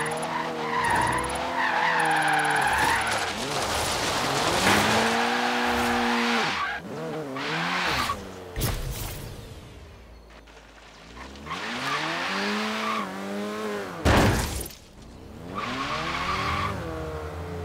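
A car engine revs hard and rises and falls in pitch.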